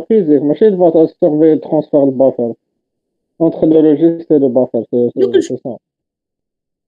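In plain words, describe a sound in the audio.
A man speaks steadily over an online call.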